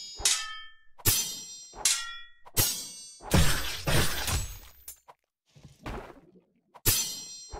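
Sharp metallic strikes ring out, each fading quickly.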